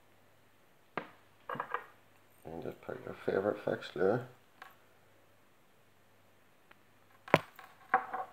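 A small metal snap clip clicks shut.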